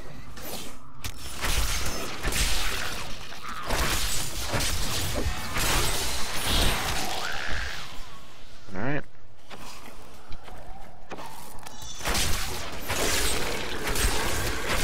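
Blows and magic blasts crash and crackle in a fight.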